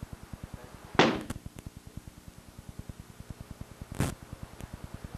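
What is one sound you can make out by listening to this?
A wooden stick strikes a padded shield with loud thuds.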